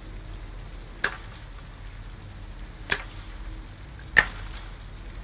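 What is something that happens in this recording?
Wire cutters snip through a chain-link fence with sharp metallic clicks.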